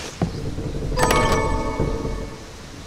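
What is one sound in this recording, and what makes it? A bright, ringing chime sounds as a chest opens.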